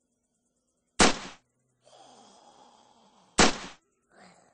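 A pistol fires two loud shots a few seconds apart.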